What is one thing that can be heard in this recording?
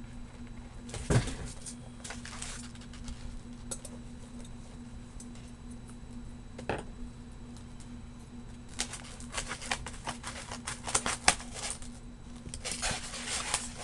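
Paper rustles and scrapes close by.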